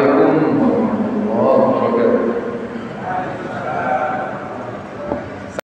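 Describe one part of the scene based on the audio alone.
A middle-aged man preaches with feeling through a microphone in an echoing room.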